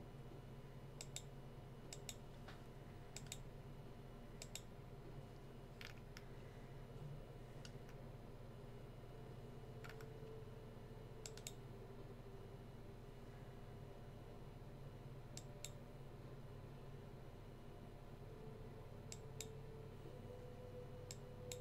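Short interface clicks and ticks sound now and then.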